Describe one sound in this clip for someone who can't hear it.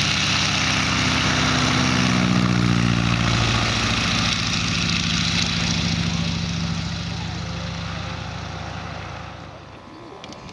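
A model plane's engine roars loudly as it takes off and flies past.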